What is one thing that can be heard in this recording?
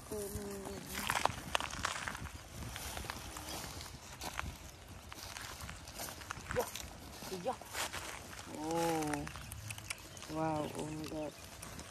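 Plastic bags rustle and crinkle as they are handled.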